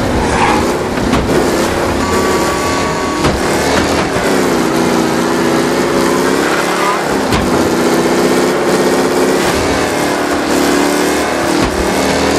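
An old racing car's engine roars steadily, rising and falling in pitch as it speeds along a road.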